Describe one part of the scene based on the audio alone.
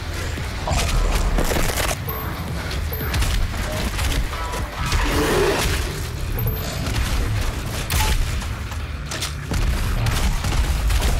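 A monster growls and shrieks.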